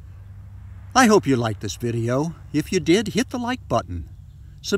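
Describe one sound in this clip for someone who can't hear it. An older man speaks calmly and close up.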